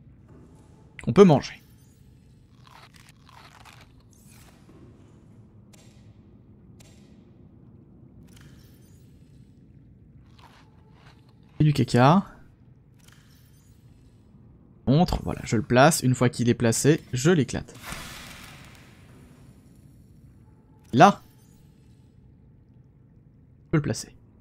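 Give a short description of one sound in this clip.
Short game interface sounds blip and chime.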